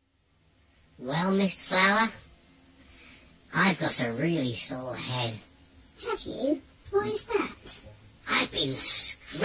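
A woman speaks in a playful character voice close by.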